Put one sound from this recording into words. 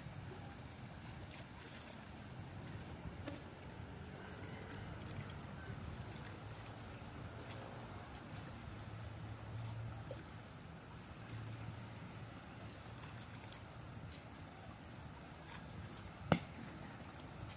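Gentle waves lap against rocks outdoors.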